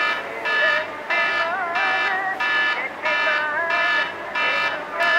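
A mobile phone rings with a repeating electronic ringtone.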